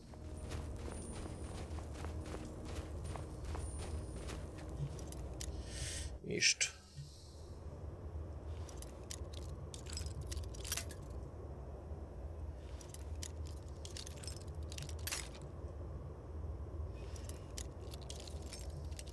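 A lock pick scrapes and clicks inside a lock.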